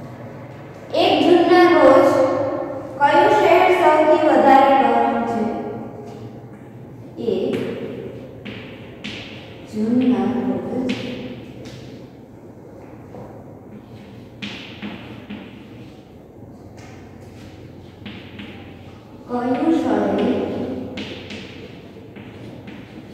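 A woman speaks clearly and slowly nearby.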